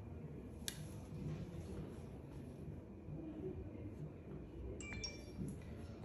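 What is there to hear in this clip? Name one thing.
A hair straightener clicks shut with a light plastic snap.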